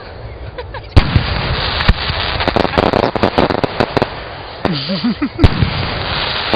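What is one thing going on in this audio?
Fireworks explode with loud booms.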